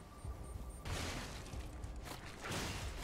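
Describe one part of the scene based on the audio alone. A fiery explosion crackles and bursts.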